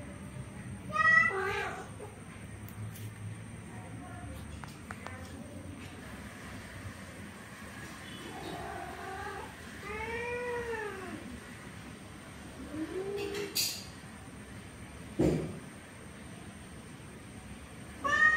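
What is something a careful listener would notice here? Cats yowl and growl at each other in drawn-out, wavering cries.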